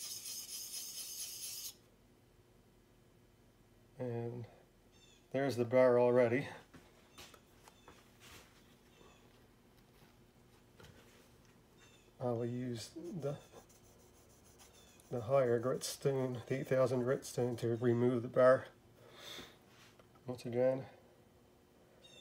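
A chisel blade rubs back and forth across a water stone.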